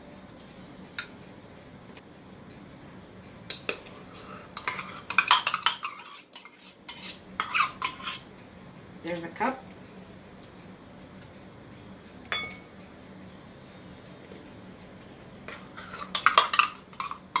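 A spoon scrapes and taps against a metal measuring cup.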